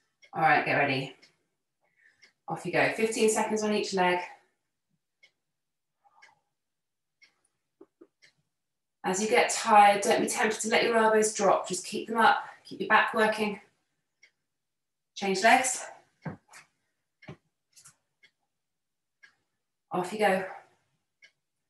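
A young woman speaks calmly and clearly, instructing in short bursts with pauses.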